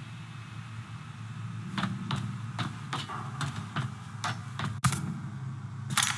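Footsteps clank down metal stairs.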